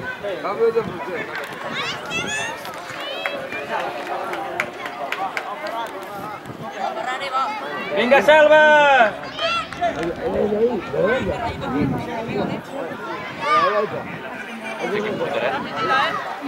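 Children shout across an outdoor football pitch.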